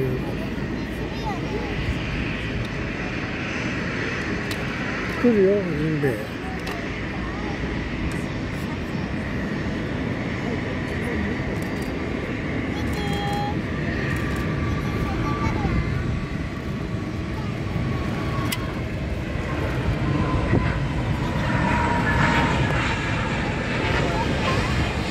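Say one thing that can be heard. A jet airliner's engines roar steadily in the distance as it taxis and speeds down a runway.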